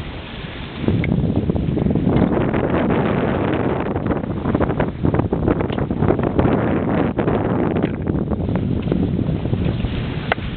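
A sail flaps and rustles in the wind.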